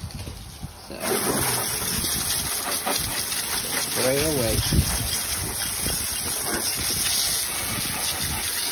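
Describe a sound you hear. Water sprays and hisses steadily onto an engine.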